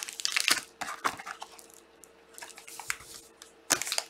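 Cardboard boxes rub and tap.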